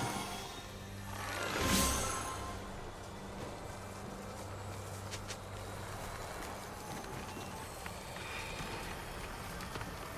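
Magical energy crackles and whooshes.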